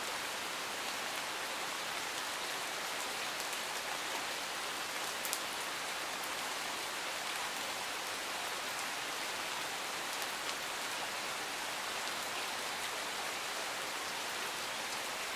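Steady rain falls and patters on leaves and gravel outdoors.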